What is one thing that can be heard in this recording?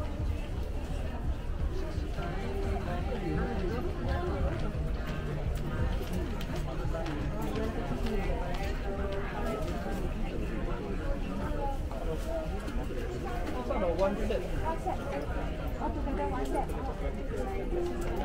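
A crowd of shoppers chatters all around indoors.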